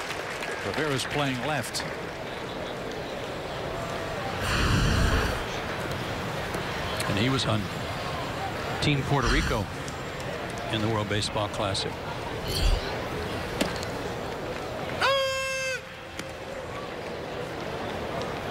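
A crowd murmurs in an open-air stadium.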